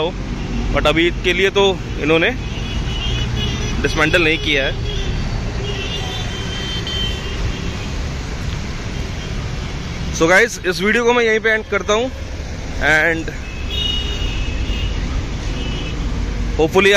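Road traffic rumbles steadily nearby.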